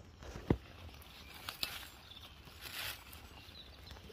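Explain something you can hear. A knife slices through a soft mushroom stem.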